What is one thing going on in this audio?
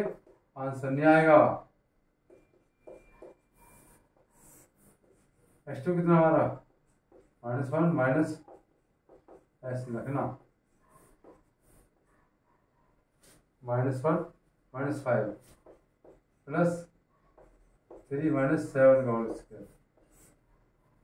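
A middle-aged man speaks calmly and clearly up close, explaining in short phrases with pauses.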